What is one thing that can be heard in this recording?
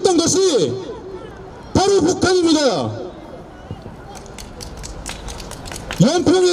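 A young man speaks loudly into a microphone over a loudspeaker, with a long echo.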